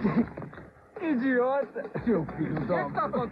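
An older man speaks.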